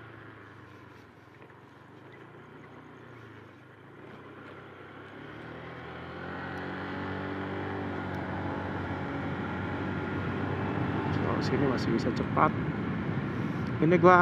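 A motorcycle engine hums and rises in pitch as it speeds up.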